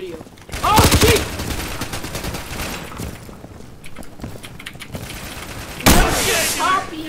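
Gunshots crack in quick bursts and echo.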